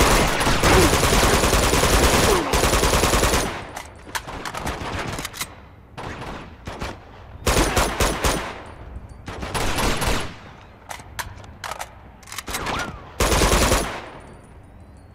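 Rapid automatic gunfire rattles in loud bursts.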